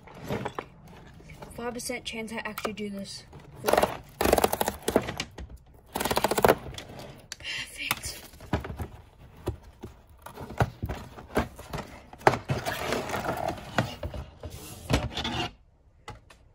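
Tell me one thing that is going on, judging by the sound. Cardboard and paper rustle and scrape under hands.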